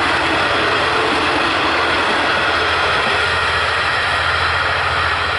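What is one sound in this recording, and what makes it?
A passenger train rumbles away along the tracks, its noise slowly fading.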